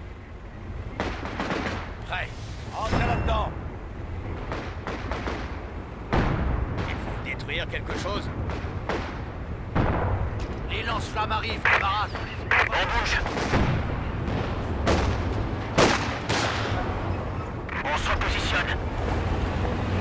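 Gunfire crackles in a distant battle.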